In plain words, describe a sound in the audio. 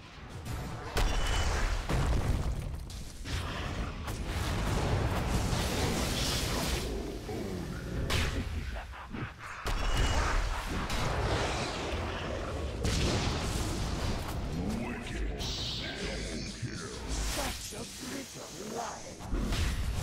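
Magic blasts and weapon blows clash loudly in a fantasy battle.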